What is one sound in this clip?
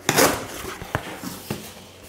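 Cardboard rustles and thumps as it is handled.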